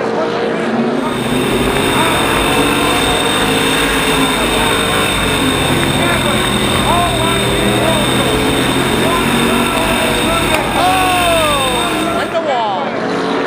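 A race car engine roars loudly up close, revving and droning.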